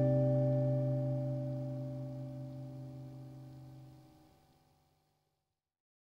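A woman sings a long, steady note into a microphone that slowly fades away.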